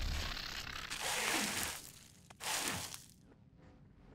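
A ghostly whoosh rushes past.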